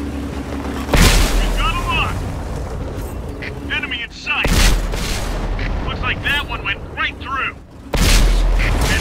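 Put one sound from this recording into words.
A tank cannon fires.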